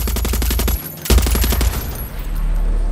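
An explosion booms in the air.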